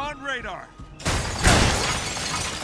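Glass shatters.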